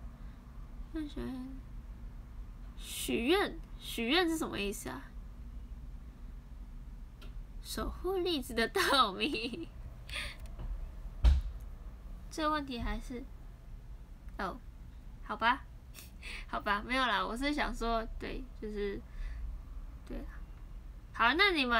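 A young woman talks casually and close by, in bursts with pauses.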